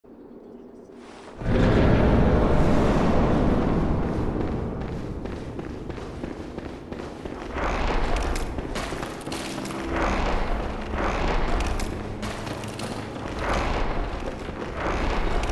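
Footsteps run quickly over a stone floor.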